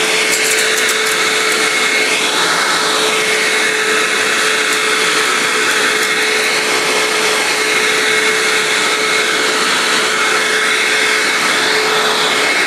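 A vacuum cleaner whines steadily as it runs over carpet.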